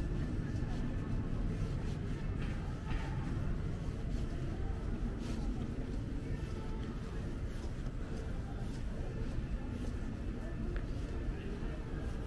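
People murmur and talk in the distance outdoors.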